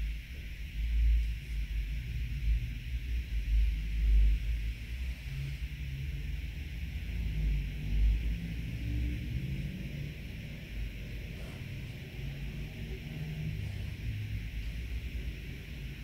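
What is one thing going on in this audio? A paintbrush brushes softly across a canvas.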